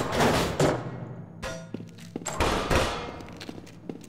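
An energy gun fires with a sharp electronic zap.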